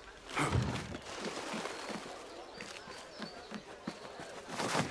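Quick footsteps thud on wooden planks.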